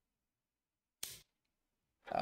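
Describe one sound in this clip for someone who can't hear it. A game piece clicks down onto a board.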